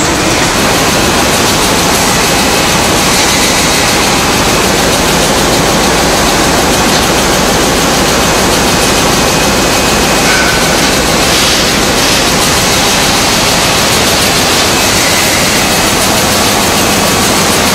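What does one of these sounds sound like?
A packing machine whirs and clatters steadily.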